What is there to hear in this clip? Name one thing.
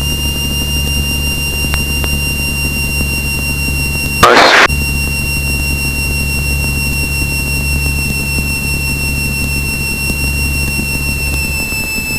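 A small plane's engine drones steadily, heard from inside the cockpit.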